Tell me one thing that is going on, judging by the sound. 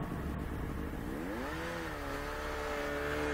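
A snowmobile engine revs up, rising in pitch, and holds a steady higher note.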